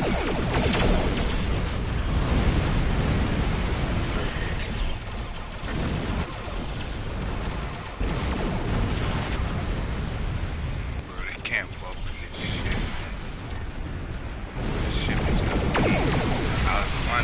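Energy weapons crackle and zap.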